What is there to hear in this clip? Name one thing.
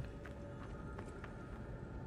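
Footsteps tread on stone pavement.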